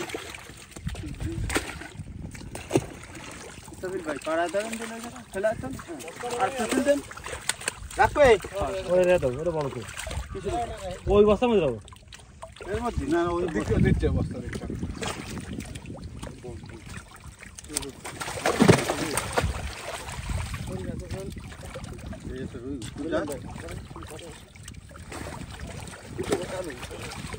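Fish splash and thrash in shallow water.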